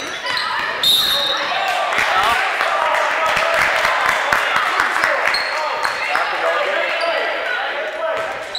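Spectators and players call out and chatter in a large echoing gym.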